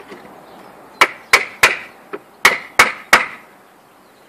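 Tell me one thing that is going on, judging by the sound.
A hammer strikes wood in quick sharp blows.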